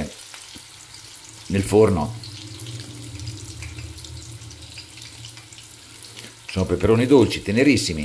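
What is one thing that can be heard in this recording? Oil sizzles and crackles in a pan as vegetables fry.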